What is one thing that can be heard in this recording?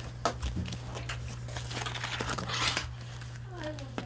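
Cardboard rustles as a box is handled.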